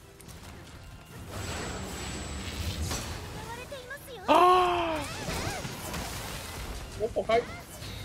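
Heavy blows and blasts crash during a fight.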